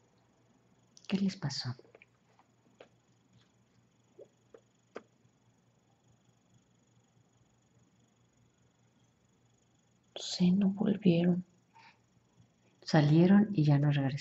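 A young woman speaks softly close by, in short bursts.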